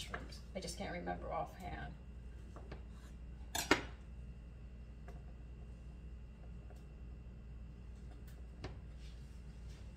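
Small slices are set down on a tray with light clicks.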